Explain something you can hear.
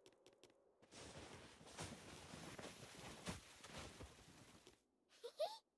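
A large snowball rolls and crunches through snow.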